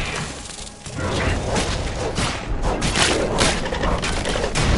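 Game weapons clash and blast with sharp impacts.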